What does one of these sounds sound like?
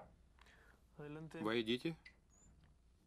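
A young man speaks briefly in a calm voice.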